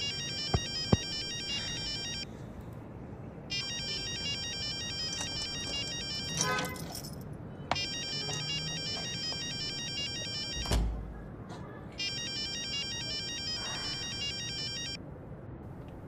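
A mobile phone rings with a repeating electronic tune.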